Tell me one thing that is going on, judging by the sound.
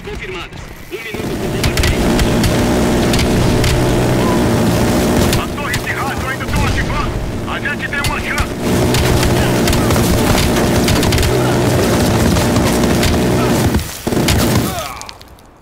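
A minigun fires in long, rapid roaring bursts.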